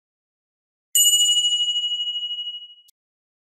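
A small bell chimes brightly and rings out.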